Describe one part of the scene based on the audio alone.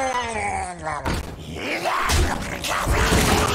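A game plays heavy thuds as creatures clash.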